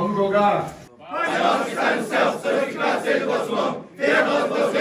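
A group of young men sing and chant loudly together.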